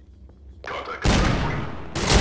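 A revolver fires a loud shot that echoes.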